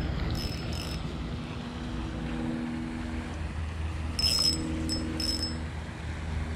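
A fishing reel clicks as its line is wound in.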